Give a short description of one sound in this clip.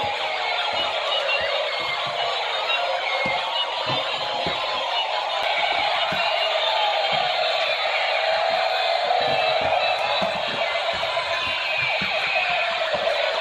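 A toy police car's electronic siren wails steadily.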